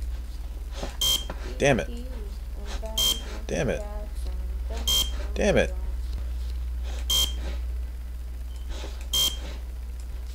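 A game's card reader beeps with short electronic tones.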